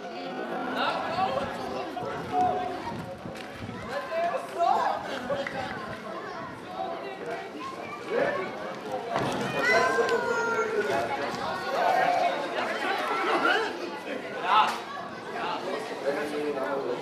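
Children and adults talk and call out outdoors.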